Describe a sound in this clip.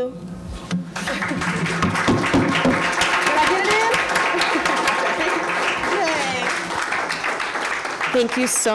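An audience claps and applauds in a room.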